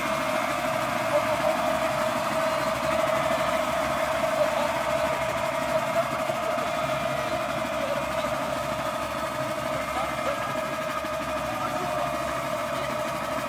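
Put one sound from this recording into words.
A brass band holds a long, steady chord outdoors.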